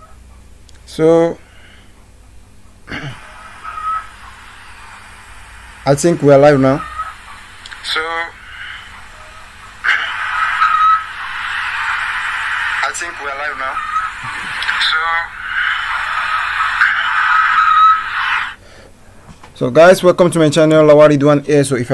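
A man talks close to a microphone, in short bursts.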